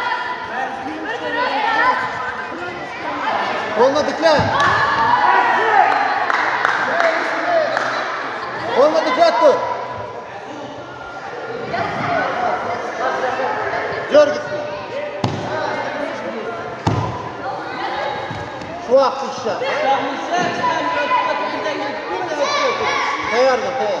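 Bare feet thud and slap on a mat.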